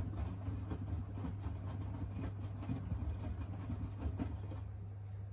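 Wet laundry sloshes and thumps inside a turning drum.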